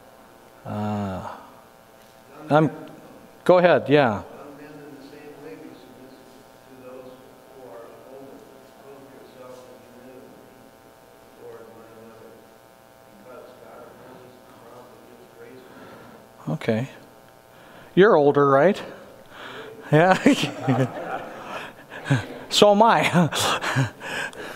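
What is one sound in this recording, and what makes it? A man speaks calmly to a group in a large room, heard from a distance.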